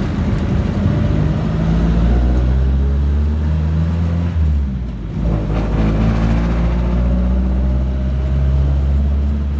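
A bus engine rumbles and hums loudly from close by.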